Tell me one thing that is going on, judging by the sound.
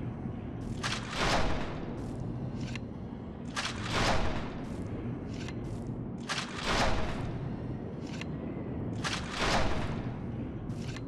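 A huge dragon's wings beat in heavy, regular whooshing gusts.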